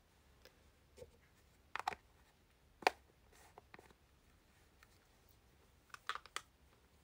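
A young woman speaks quietly and briefly, close by.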